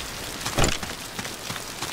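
A fire burns and crackles.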